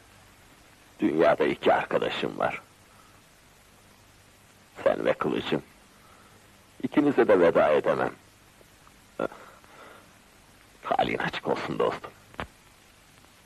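A man speaks firmly and earnestly at close range.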